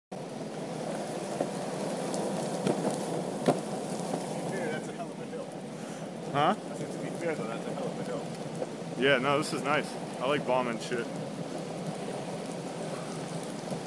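Skateboard wheels roll and rumble steadily on asphalt.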